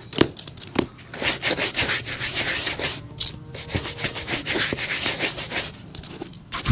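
A cloth rubs polish onto a leather shoe.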